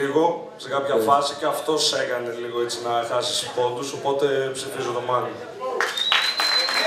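A young man raps into a microphone over a loudspeaker.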